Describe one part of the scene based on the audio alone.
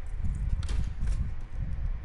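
A key turns and clicks in a door lock.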